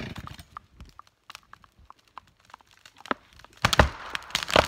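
Wood creaks and pops sharply as a tree's trunk starts to give way.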